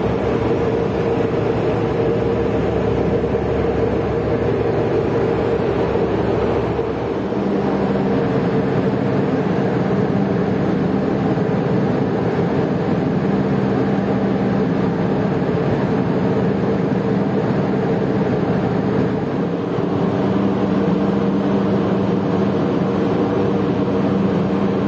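A boat engine rumbles and hums steadily.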